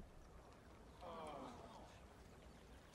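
A small crowd exclaims.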